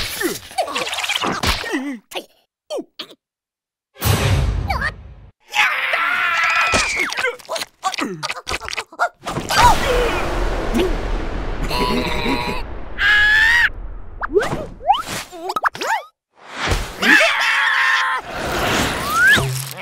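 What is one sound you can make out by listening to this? Cartoon creatures chatter in squeaky, high voices.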